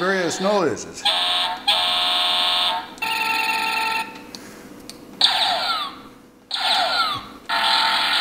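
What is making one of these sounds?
An electronic horn on a mobility scooter beeps in steady bursts.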